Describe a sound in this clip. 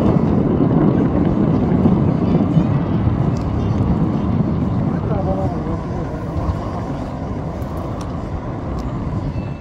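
A small outboard motorboat hums across the water, slowly fading.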